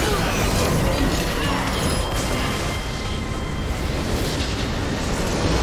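Magic spell effects crackle and clash in a fight.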